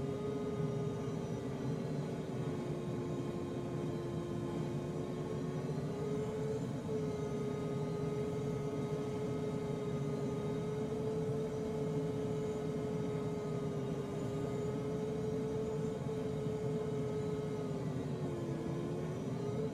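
Wind rushes steadily past a glider's canopy.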